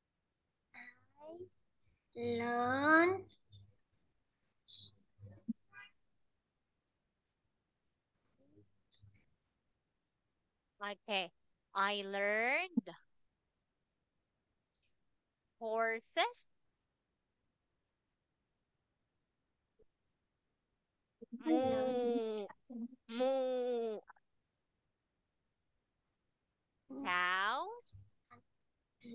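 A child answers over an online call.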